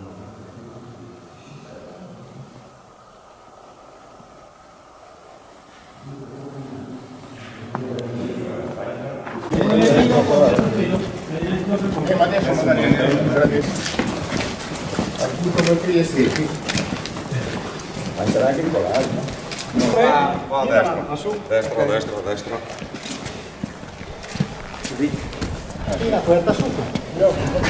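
Boots shuffle on paving stones.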